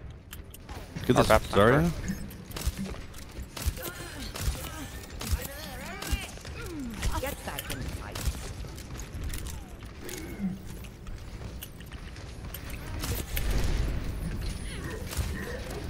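Rifle shots fire in short bursts.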